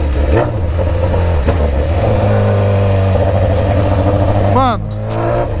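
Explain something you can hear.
A motorcycle engine drones steadily at cruising speed.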